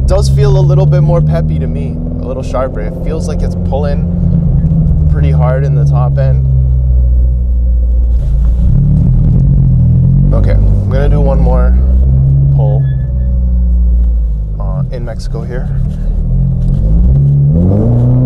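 A car engine hums steadily at low speed.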